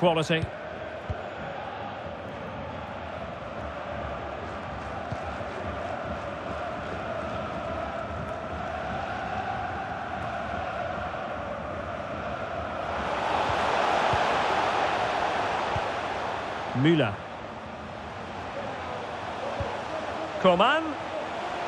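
A large crowd roars and chants steadily, swelling louder for a while.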